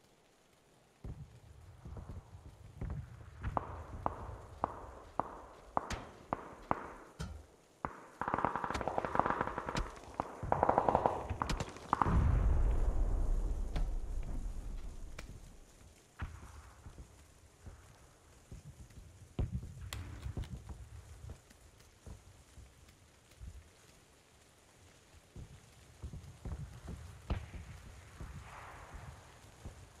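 Footsteps thud steadily on a hard floor.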